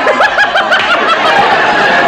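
An elderly man laughs heartily.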